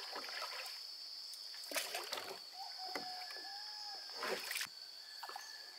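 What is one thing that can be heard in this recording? A wooden pole splashes in the water.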